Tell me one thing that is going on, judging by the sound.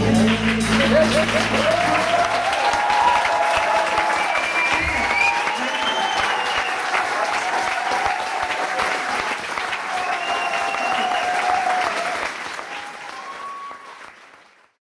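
An audience claps and cheers in a large hall, then fades.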